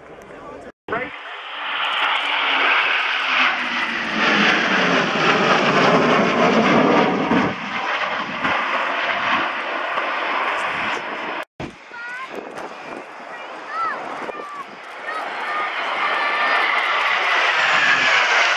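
Jet engines roar loudly overhead, rising and fading as the aircraft pass.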